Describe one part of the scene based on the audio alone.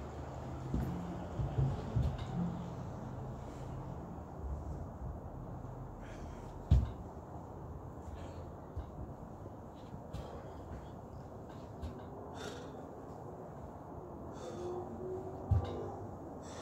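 A stick knocks against the floor with dull thuds.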